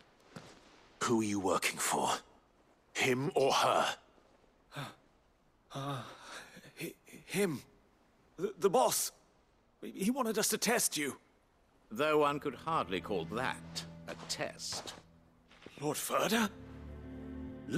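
A man asks questions in a stern, low voice.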